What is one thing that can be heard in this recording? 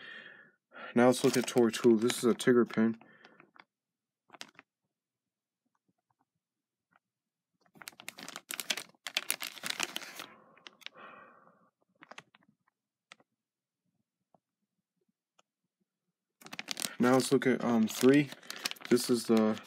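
A plastic wrapper crinkles in a hand.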